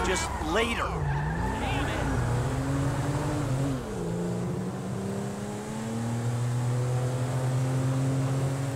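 A car engine hums steadily as it drives, its pitch rising and dipping with speed.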